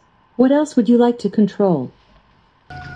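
A smart speaker answers in a synthetic voice.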